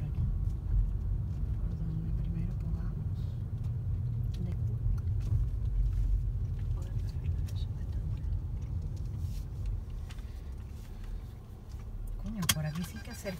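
A car engine rumbles low as the car rolls slowly along.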